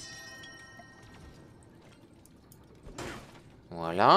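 A metal hammer strikes a crate with a sharp clang.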